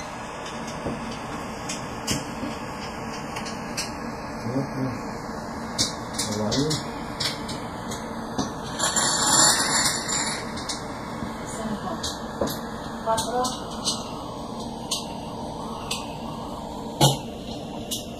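Plastic tiles click and clack as they are placed and slid on a table.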